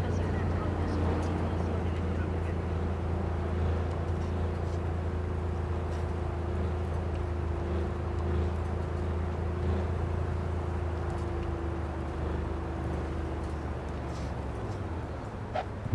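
A car engine hums steadily as a vehicle drives along a road.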